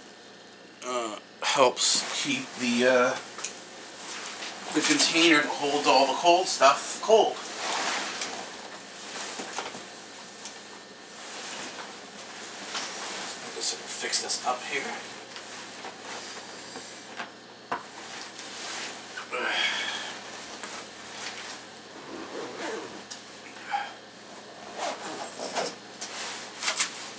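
A middle-aged man speaks close by, calmly.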